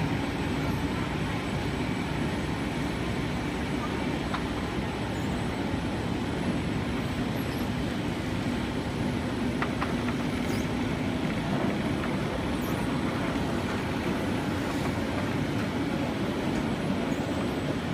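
Industrial machinery hums and whirs steadily.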